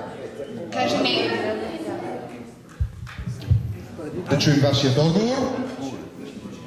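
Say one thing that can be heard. Several people talk in a large echoing hall.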